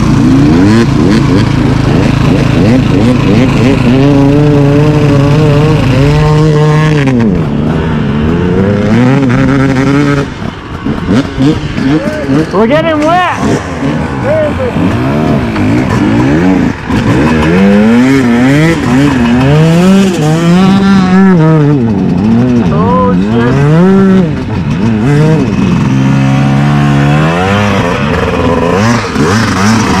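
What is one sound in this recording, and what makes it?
Other dirt bikes rev nearby.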